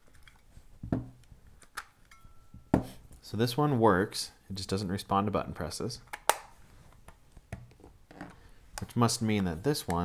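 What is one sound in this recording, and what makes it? Small plastic parts snap and click in hands.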